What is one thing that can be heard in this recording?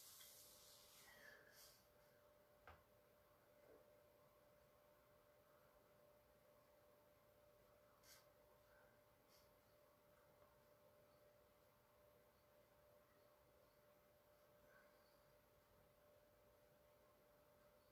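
A paintbrush softly brushes across canvas.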